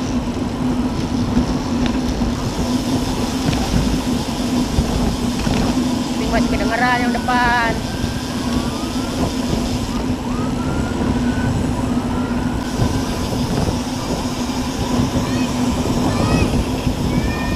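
Wind rushes steadily past close by while riding outdoors.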